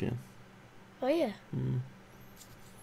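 A young child speaks in a high voice.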